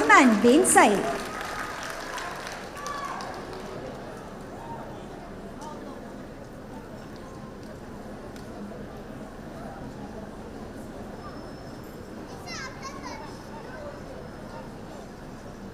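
A large crowd murmurs softly.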